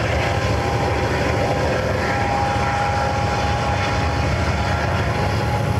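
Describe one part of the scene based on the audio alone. A diesel locomotive engine roars steadily nearby.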